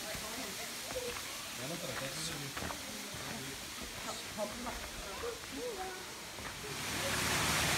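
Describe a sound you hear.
Footsteps crunch on a dirt and gravel path.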